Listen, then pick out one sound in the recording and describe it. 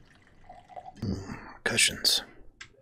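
A man speaks nearby into a microphone.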